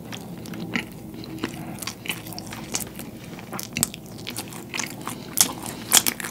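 A man chews food noisily with wet smacking sounds close to a microphone.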